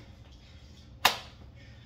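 Sneakers thump on a hard floor.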